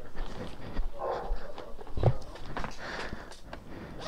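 A bag's zipper rasps open.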